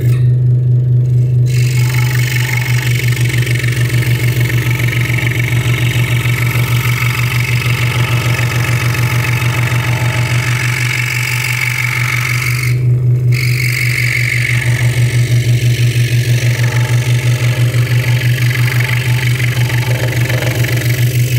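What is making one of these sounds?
A scroll saw hums and rattles steadily.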